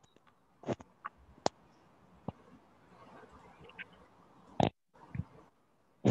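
A woman speaks quietly into a headset microphone, heard close up.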